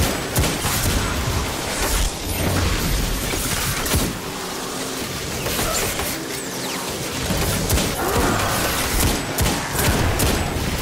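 Crackling energy blasts explode and hiss.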